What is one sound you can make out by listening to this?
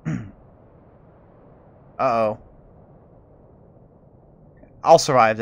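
A man speaks into a close microphone in short, drawn-out bursts.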